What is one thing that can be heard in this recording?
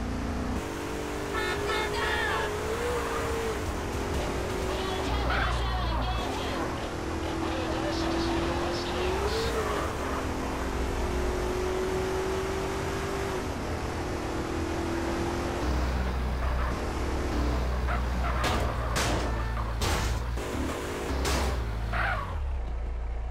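A car engine hums steadily and revs as the car drives fast.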